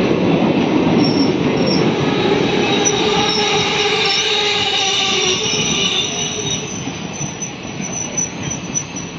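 Train wheels squeal against the rails.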